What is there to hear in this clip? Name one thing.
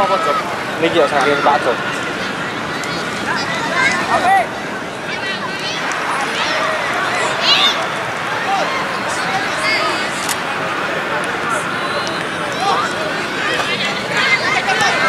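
Children shout and call out across an open outdoor field.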